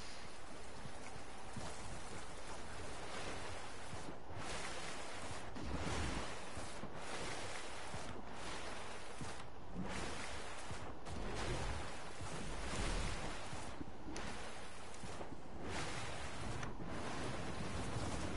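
Water splashes as a figure wades and swims.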